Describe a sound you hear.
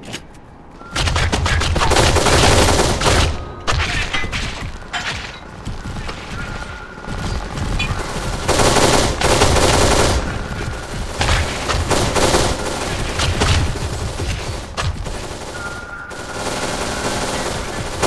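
Gunfire rattles in rapid bursts with loud echoing bangs.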